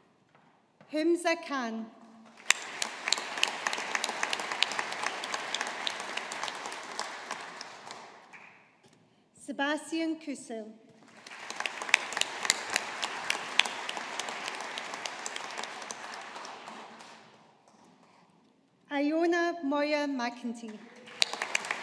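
A woman reads out through a microphone in a large hall.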